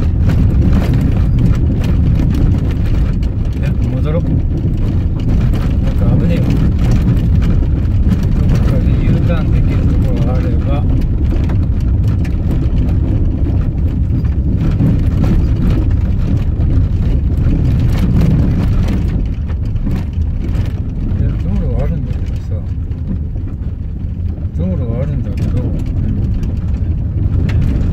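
A car drives along a rough dirt track.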